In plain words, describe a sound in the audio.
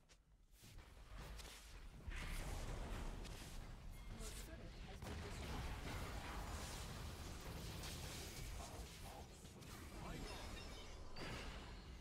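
Magic spells blast and crackle in a video game battle.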